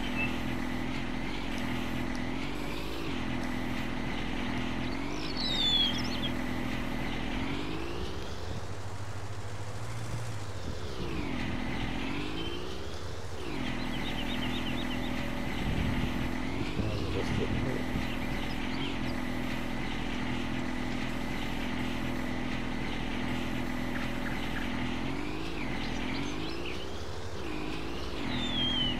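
A small tractor engine hums steadily and revs up and down.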